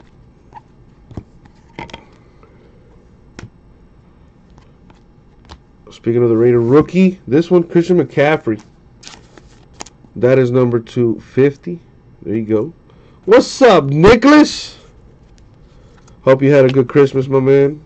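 Trading cards rustle and click as hands shuffle through them, close by.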